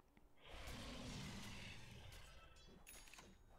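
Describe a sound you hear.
Game combat effects whoosh and crackle.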